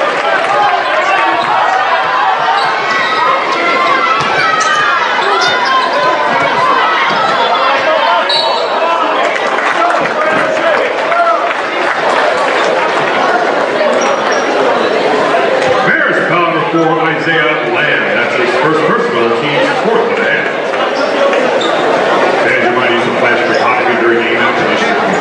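A large crowd murmurs and cheers in an echoing gym.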